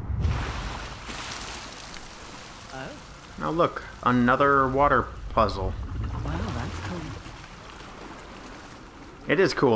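Water pours and splashes steadily.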